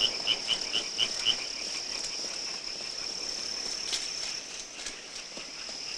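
Tall grass rustles as a person wades through it nearby.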